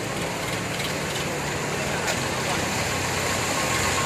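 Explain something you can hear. Water sloshes in waves behind a moving tractor.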